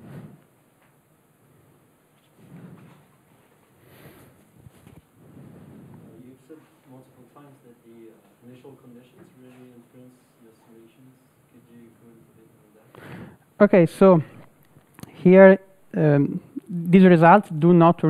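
A young man speaks calmly to a room, heard through a microphone.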